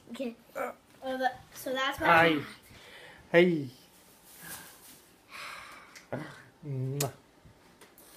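A young boy talks and laughs close by.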